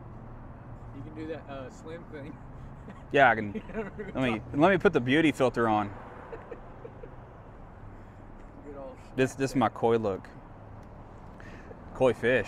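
A man laughs softly.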